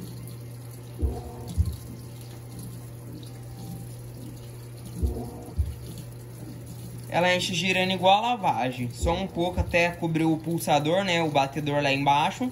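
Water pours into a washing machine drum.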